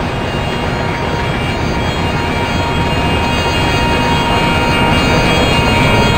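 A locomotive's engine roars as it passes close by.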